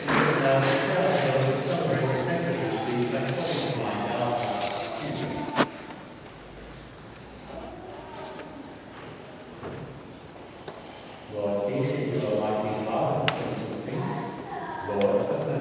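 A congregation sings together in a large echoing hall.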